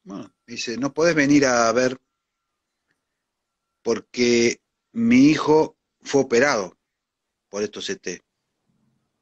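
An elderly man speaks close to the microphone in short, halting phrases.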